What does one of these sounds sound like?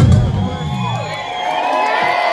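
A rock band plays loudly and stops.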